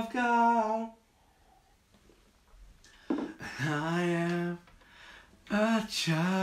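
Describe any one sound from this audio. A man sings close by with a strong, sustained voice.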